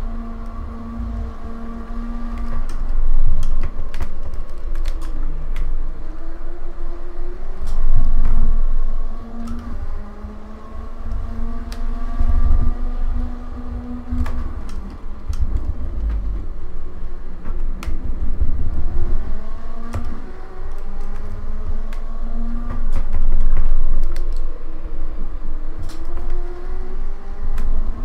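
A racing car engine revs up and down and shifts gears.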